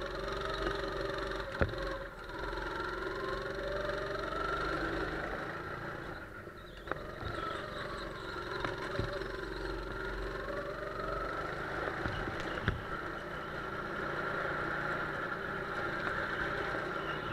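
Other go-kart engines buzz past nearby.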